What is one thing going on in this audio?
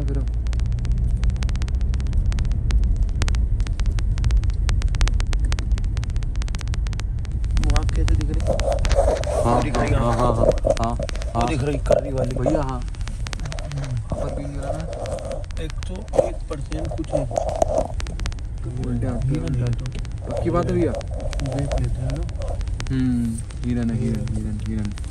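Tyres rumble and crackle over a rough gravel road.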